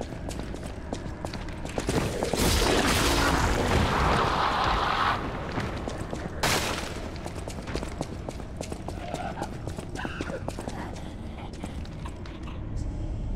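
Footsteps clatter quickly on a hard floor.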